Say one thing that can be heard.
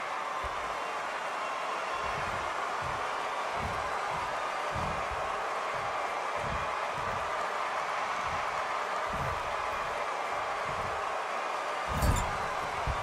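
A large crowd roars steadily in a big echoing arena.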